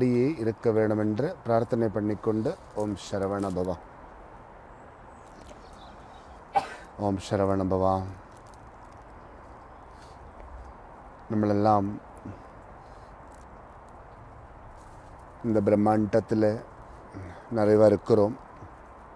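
A man speaks calmly and clearly into a nearby microphone, with pauses.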